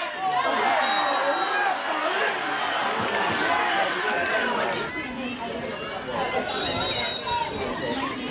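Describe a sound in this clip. A referee's whistle blows short and shrill.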